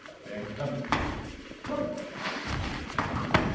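Bare feet shuffle and stamp on a mat.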